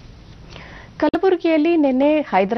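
A woman speaks clearly and calmly into a microphone.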